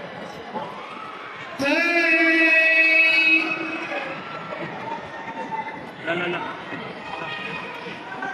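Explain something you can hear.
A young man speaks with animation through a microphone over loudspeakers.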